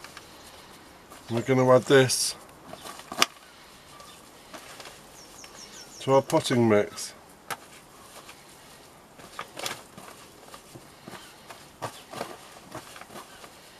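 Fingers press and crumble damp soil with soft rustling.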